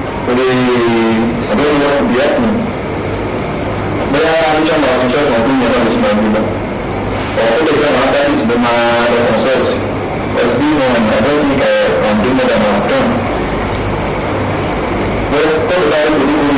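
A woman speaks weakly and quietly.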